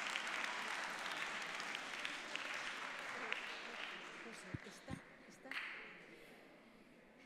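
A large audience chatters.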